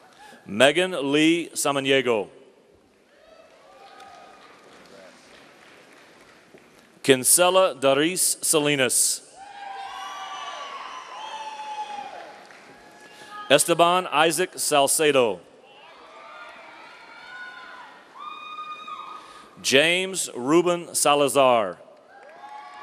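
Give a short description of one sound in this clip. A man reads out names loudly through a microphone in a large echoing hall.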